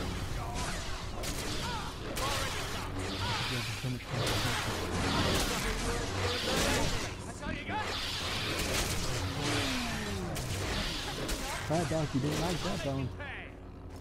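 Swords clash and clang repeatedly.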